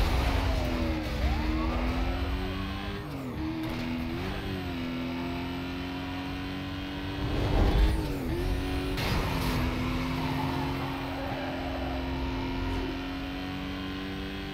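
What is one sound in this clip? A racing car engine roars at high speed, shifting pitch through the gears.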